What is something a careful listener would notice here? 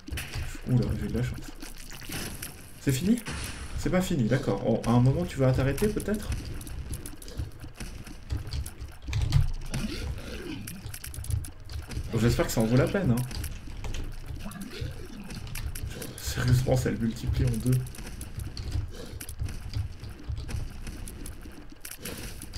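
Game sound effects of shots and splatters play throughout.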